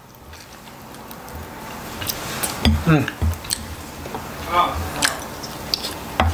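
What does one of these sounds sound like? A man chews food with wet, smacking sounds.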